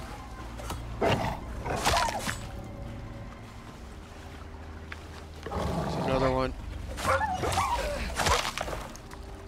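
A wolf yelps and whines when struck.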